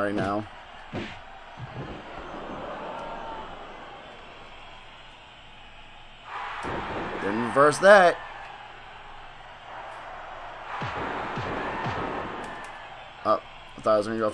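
Bodies thud heavily onto a wrestling mat.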